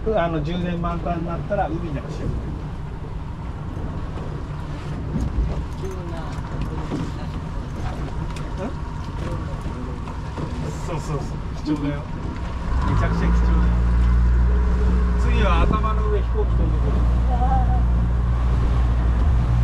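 A boat engine drones steadily and grows louder.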